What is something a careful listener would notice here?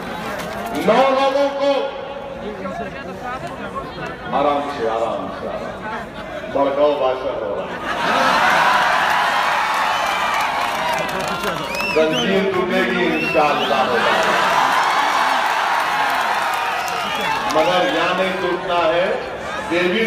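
A man speaks forcefully through a loudspeaker outdoors.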